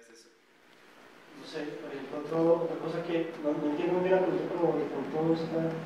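A man in the audience speaks from a distance.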